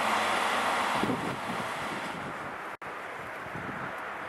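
A passenger train rolls past on the tracks.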